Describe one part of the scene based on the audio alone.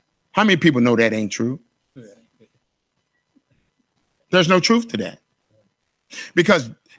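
A middle-aged man speaks with animation into a microphone, in bursts with pauses.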